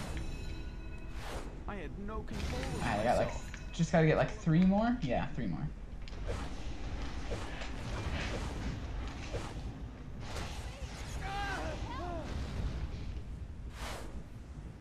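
Game combat effects whoosh and clash.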